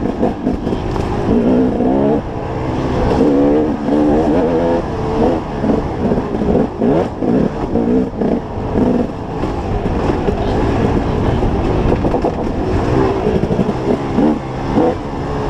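A dirt bike engine revs up and down, close by.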